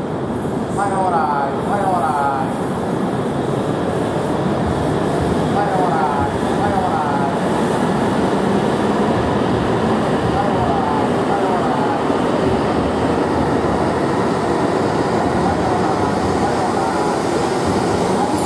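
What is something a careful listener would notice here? A train rolls slowly into the station with a steady rumble.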